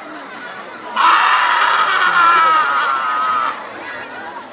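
A man sings out loudly in long, wavering notes.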